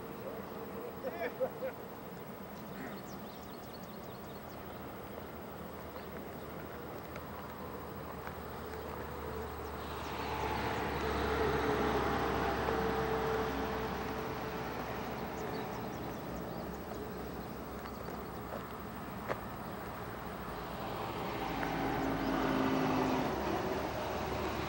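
Men talk quietly at a distance outdoors.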